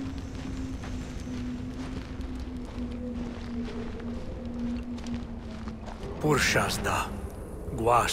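A burning torch crackles.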